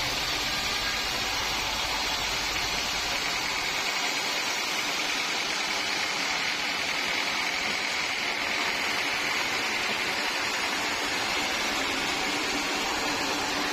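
A band saw whines steadily as it cuts through a large log.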